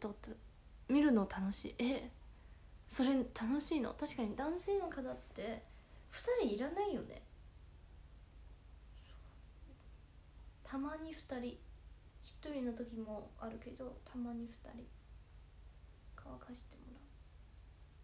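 A young woman talks calmly and close up, with pauses.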